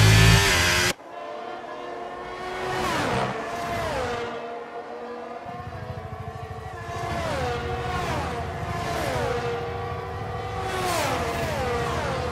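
Racing car engines scream past and fade, with falling pitch as each car goes by.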